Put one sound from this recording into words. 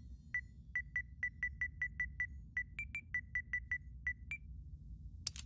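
Short electronic beeps sound in quick rapid succession.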